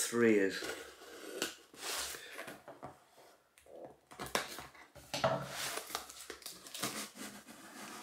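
Paper crinkles and rustles as a package is unwrapped.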